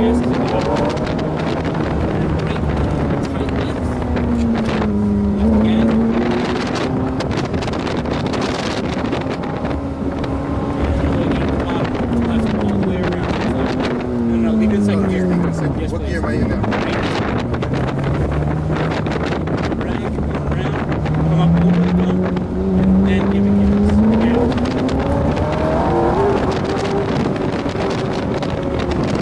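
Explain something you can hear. Wind rushes past an open car.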